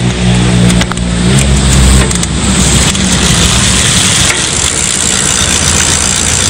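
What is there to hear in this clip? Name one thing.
A bicycle's gears click as the pedals turn.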